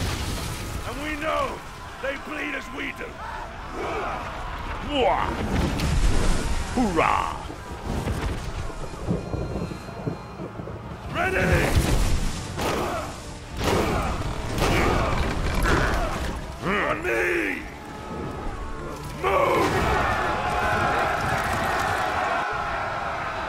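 Fire roars and crackles.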